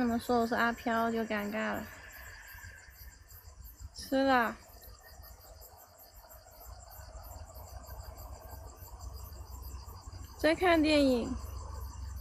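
A young woman's voice rings out in short, gliding bursts close by.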